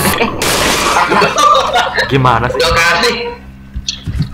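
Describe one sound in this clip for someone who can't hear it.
A man laughs loudly close to a microphone.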